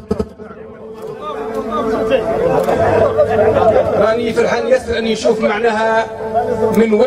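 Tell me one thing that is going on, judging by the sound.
A middle-aged man speaks with animation into a microphone, heard through loudspeakers outdoors.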